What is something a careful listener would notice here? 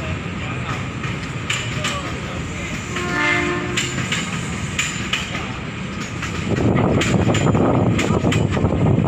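Train wheels clack over the rail joints.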